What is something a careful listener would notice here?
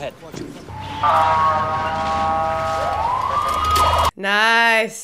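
A siren wails loudly through a speaker.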